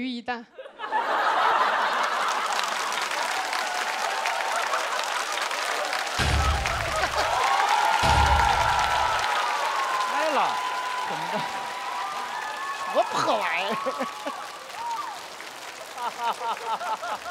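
A large audience laughs and cheers loudly.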